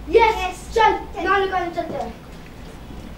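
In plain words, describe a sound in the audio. Children speak loudly to each other.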